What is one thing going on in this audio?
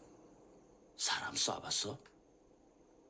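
A young man asks a question in a low, tense voice, close by.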